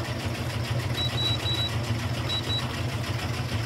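A washing machine beeps several times.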